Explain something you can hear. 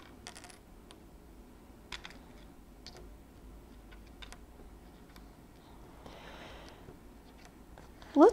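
Small wooden pieces click softly on a table.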